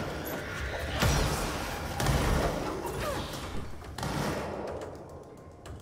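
Loud explosions boom and debris clatters.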